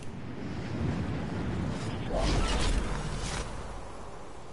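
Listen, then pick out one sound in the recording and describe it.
Wind rushes past as a game character skydives.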